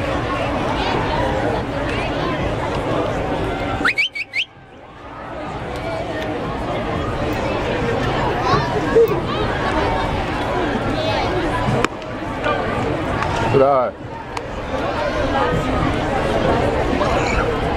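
A crowd chatters outdoors in the stands.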